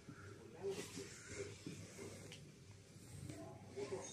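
Clothing rustles as a jacket is put on.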